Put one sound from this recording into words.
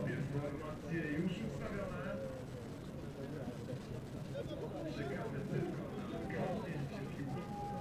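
Several men talk casually nearby outdoors.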